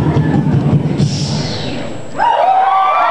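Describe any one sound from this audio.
A young man raps into a microphone over loudspeakers in a large hall.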